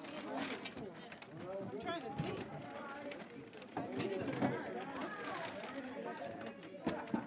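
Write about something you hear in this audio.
A crowd of older men and women chatters all around in a room that echoes a little.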